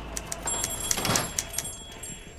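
A door latch clicks open.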